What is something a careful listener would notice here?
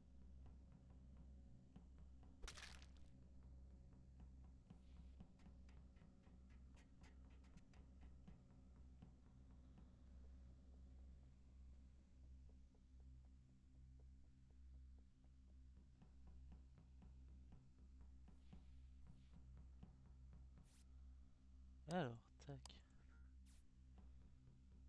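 Small footsteps patter quickly.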